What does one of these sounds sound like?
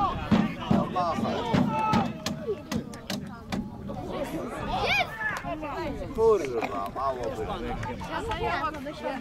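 Football players shout to each other in the distance outdoors.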